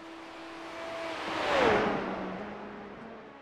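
A race car roars past at speed, its engine pitch dropping.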